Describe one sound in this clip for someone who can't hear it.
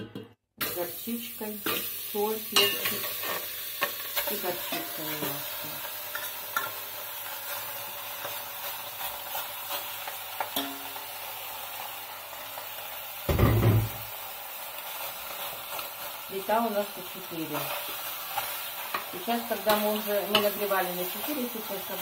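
A metal spoon scrapes and clinks against a metal bowl.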